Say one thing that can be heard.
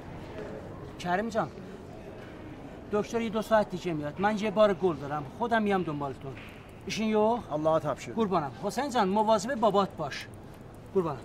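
A middle-aged man talks with animation close by.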